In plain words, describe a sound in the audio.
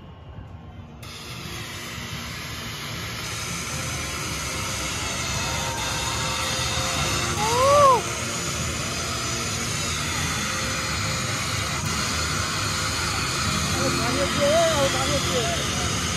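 Stage smoke jets hiss loudly in bursts.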